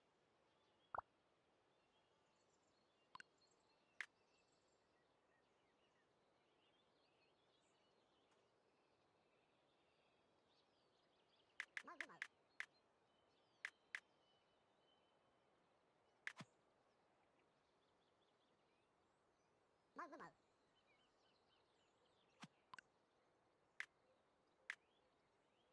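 Short interface clicks sound now and then.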